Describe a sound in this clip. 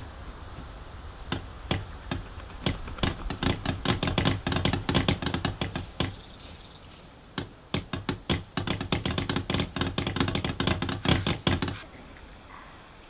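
Wooden sticks knock and clatter as a shelter is built.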